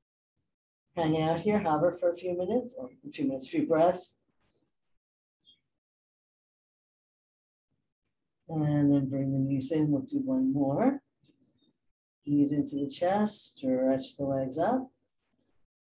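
A woman speaks calmly through a microphone, giving instructions.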